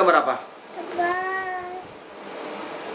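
A small boy speaks briefly in a high voice.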